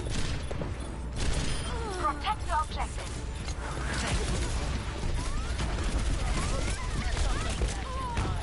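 Rapid video game gunfire blasts in bursts.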